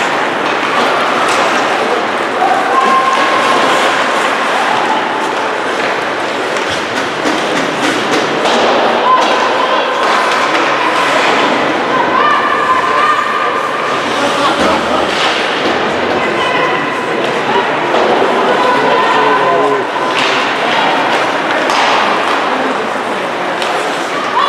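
Hockey sticks clack against a puck and against each other.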